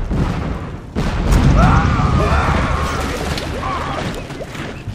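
Cannons boom and crash in a naval battle.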